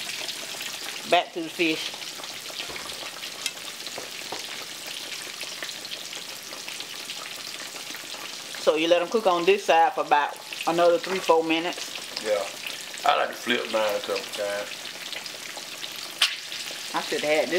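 Oil sizzles and bubbles steadily as food fries.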